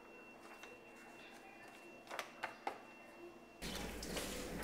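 Sheets of paper rustle and crinkle in a man's hands.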